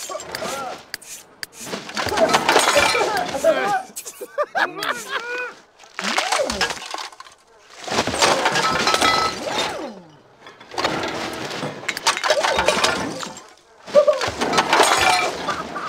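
Rubbish rustles and clatters in bursts as it is rummaged through and tossed out.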